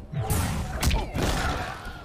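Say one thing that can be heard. A burst of fire roars briefly.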